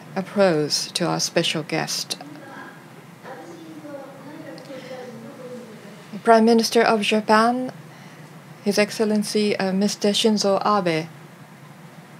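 A woman speaks clearly through a microphone in a large hall.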